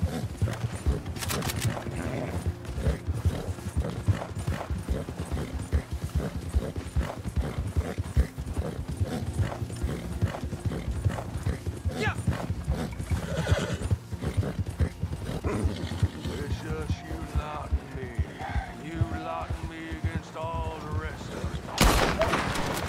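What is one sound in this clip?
Horse hooves pound rapidly through snow.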